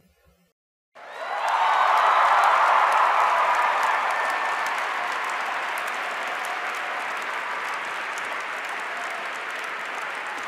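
A large audience applauds loudly in an echoing hall, then the clapping slowly settles.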